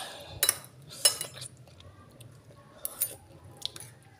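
A metal spoon clinks against a bowl.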